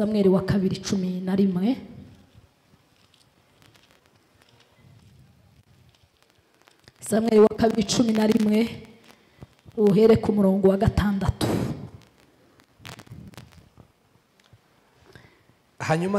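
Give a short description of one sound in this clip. A young woman sings slowly into a microphone, heard through a loudspeaker, in phrases with pauses.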